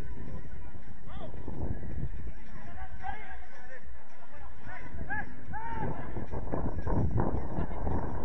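Players shout to each other across an outdoor pitch.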